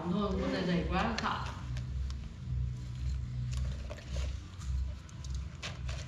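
Leaves rustle and crinkle as they are handled.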